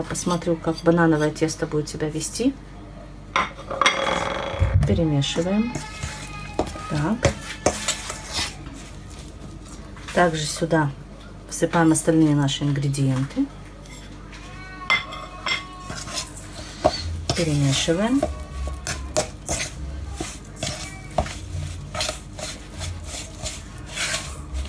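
A fork scrapes and clinks against a metal bowl.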